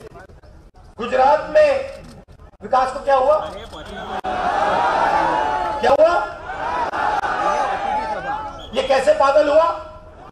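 A man speaks loudly and with animation into a microphone, heard through loudspeakers outdoors.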